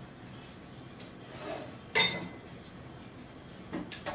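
A metal pot clinks against a sink.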